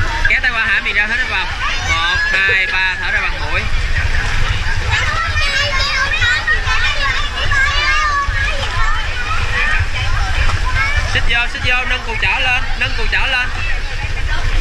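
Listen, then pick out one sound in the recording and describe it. Children shout and chatter excitedly nearby.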